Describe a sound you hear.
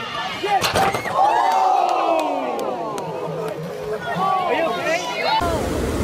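Runners splash through water.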